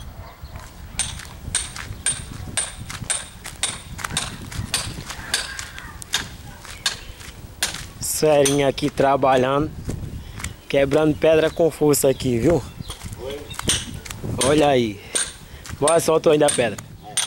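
A metal tool taps and chips at stone in quick, repeated strikes.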